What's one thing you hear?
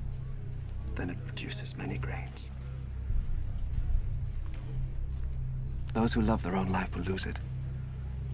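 A man speaks quietly and calmly, close by.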